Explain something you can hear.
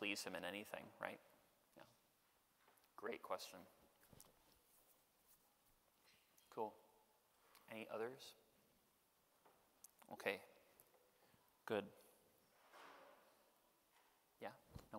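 A young man speaks calmly into a microphone, in short phrases with pauses, in a reverberant room.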